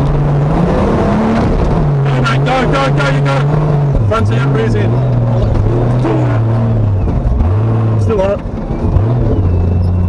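A vehicle engine revs and labours loudly, rising and falling in pitch.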